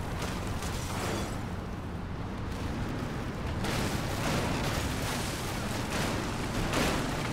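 Leaves and branches swish against a jeep.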